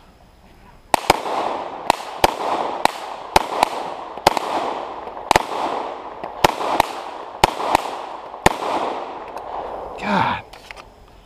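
A pistol fires shot after shot outdoors, each crack echoing.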